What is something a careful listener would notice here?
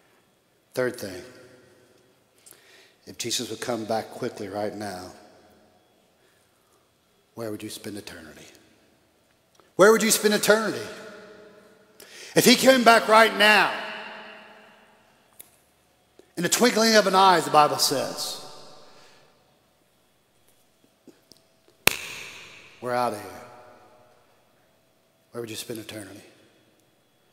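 An elderly man preaches with animation through a microphone in an echoing hall, pausing between phrases.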